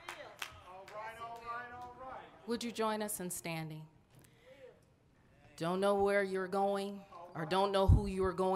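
A woman speaks into a microphone over loudspeakers, with strong emotion.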